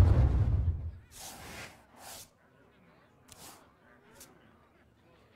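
Short chimes and swishes sound from the game now and then.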